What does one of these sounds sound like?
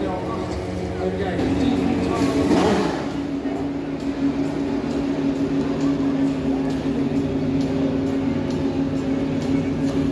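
Racing car engines idle with a loud, steady hum.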